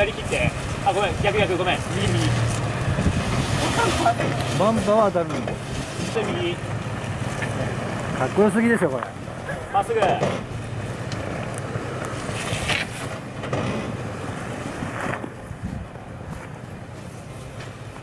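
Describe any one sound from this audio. Tyres grind and scrape over rock.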